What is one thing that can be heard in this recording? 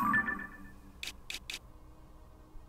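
Short electronic menu clicks sound in quick succession.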